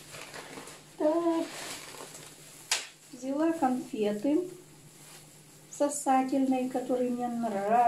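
A plastic bag rustles and crinkles as hands handle it.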